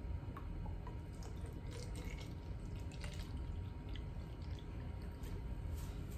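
Water pours from a plastic bottle into another bottle.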